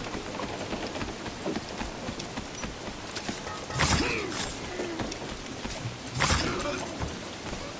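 Footsteps thud quickly across a wooden deck.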